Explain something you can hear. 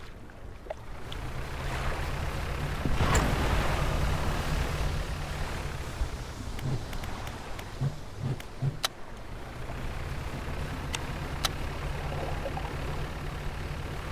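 A boat engine chugs steadily.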